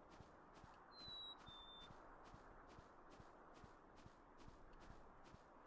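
Soft footsteps patter steadily on a dirt path.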